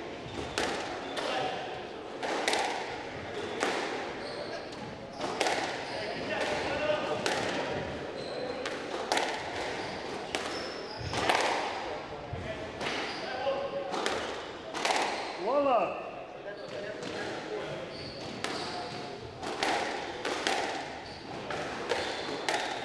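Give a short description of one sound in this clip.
A squash ball smacks sharply off racquets and walls, echoing around the court.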